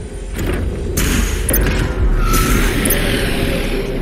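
A player character dashes with a loud whoosh.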